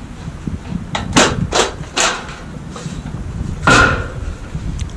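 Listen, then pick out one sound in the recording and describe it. Metal rails clank against each other as they are moved.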